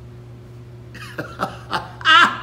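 A man laughs heartily close by.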